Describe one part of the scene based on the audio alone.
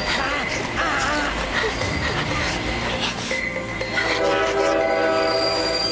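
A train rumbles closer along the tracks.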